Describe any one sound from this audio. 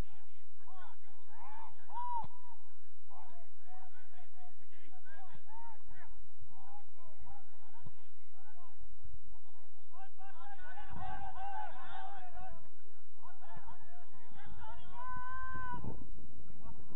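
Young players call out to each other across an open field in the distance.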